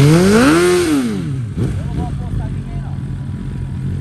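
A motorcycle's rear tyre squeals as it spins on asphalt in a burnout.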